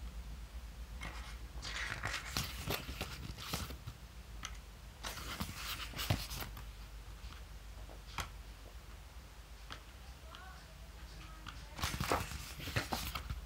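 Paper pages rustle and flip as a book's pages are turned by hand.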